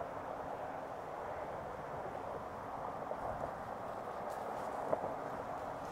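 A man whispers close by.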